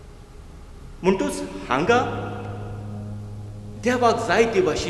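A man speaks with animation through a microphone, echoing in a large hall.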